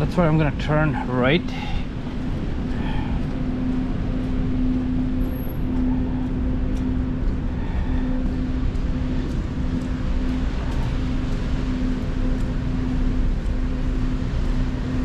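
Traffic rumbles low and steadily along a snowy street.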